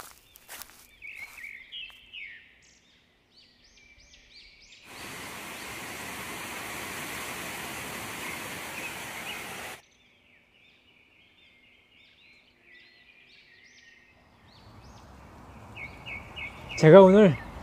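Birds chirp in the trees.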